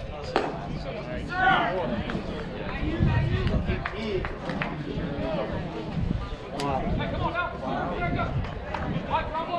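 People chatter and call out nearby, outdoors.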